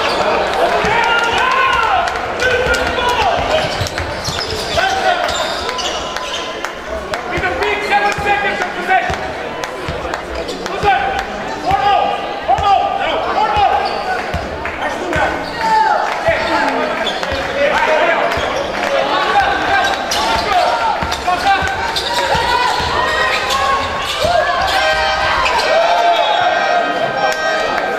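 Spectators murmur and call out in a large echoing hall.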